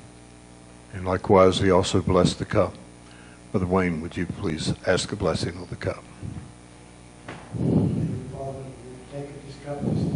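A man speaks slowly and clearly through a microphone.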